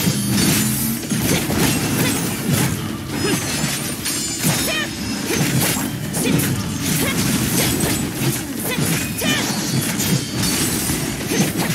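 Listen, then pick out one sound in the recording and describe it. Blades slash and strike rapidly.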